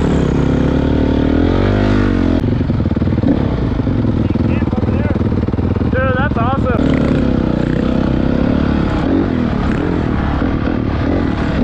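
A dirt bike engine revs and buzzes up close, rising and falling in pitch.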